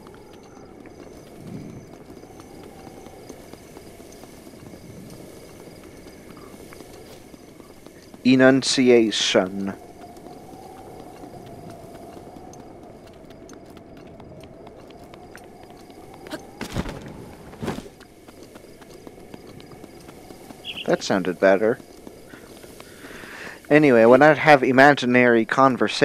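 Quick footsteps patter over grass and rock.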